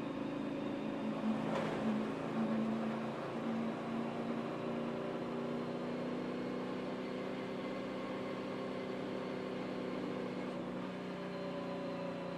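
Wind rushes past the car.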